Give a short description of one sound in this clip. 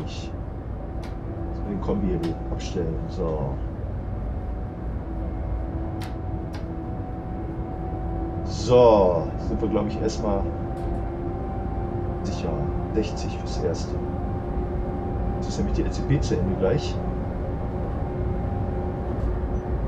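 An electric train's motor hums steadily as the train runs.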